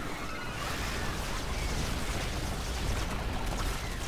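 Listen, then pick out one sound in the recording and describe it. A loud explosion booms from a game battle.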